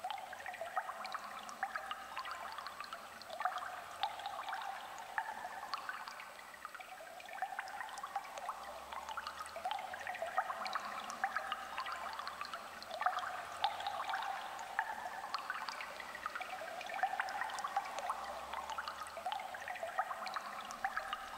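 Electronic synthesizer music plays with a repeating melodic pattern and clicking percussion.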